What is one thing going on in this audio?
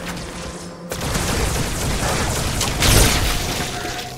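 A sci-fi weapon fires glowing bolts in quick bursts.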